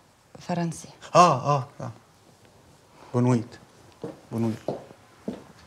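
A young woman speaks with feeling close by.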